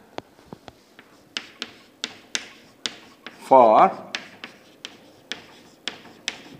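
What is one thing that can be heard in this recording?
Chalk taps and scrapes on a blackboard in quick, sharp strokes.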